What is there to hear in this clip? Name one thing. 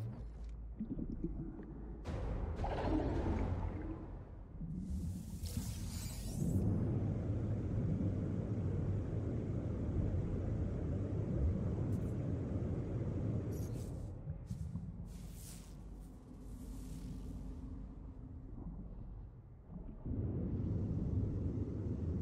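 A low underwater rumble drones on.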